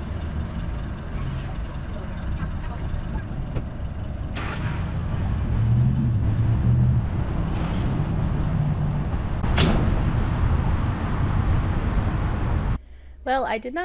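A fuel pump hums steadily as fuel flows.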